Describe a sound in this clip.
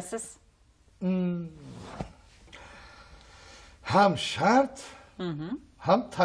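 A middle-aged man chuckles.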